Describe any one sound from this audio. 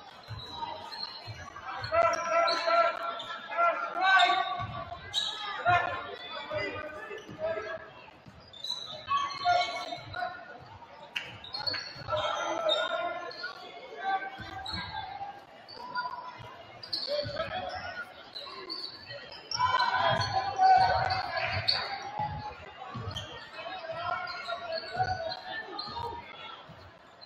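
A basketball bounces on a hardwood court in an echoing gym.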